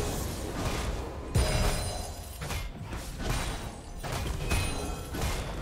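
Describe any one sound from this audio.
Magic blasts and weapon hits crackle and thump in a fight.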